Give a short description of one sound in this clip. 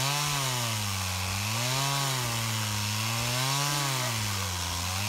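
A chainsaw engine roars loudly, its pitch rising and falling as it cuts through wood.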